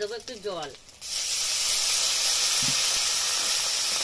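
Water pours into a hot pan and sizzles loudly with a steady hiss.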